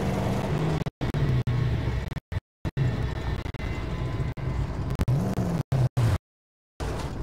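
A car engine sputters and slows to a stop.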